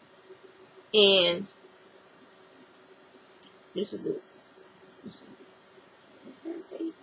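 A middle-aged woman speaks calmly close to a microphone.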